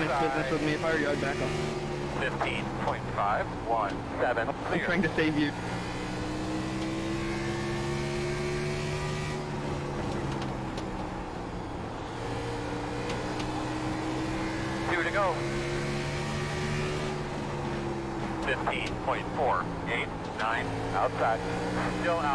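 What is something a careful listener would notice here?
A racing car engine drones steadily and shifts in pitch.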